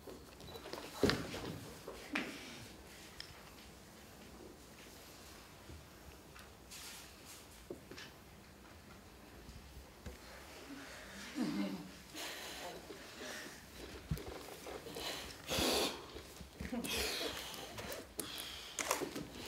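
Bodies land and slide with soft thuds on a wooden floor.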